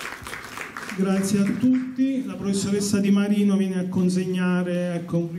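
A man speaks calmly through a loudspeaker in an echoing hall.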